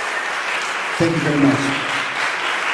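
A man in the audience cheers briefly.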